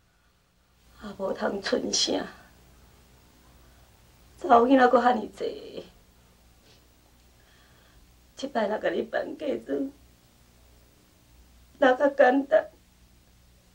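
A middle-aged woman speaks calmly and quietly, close by.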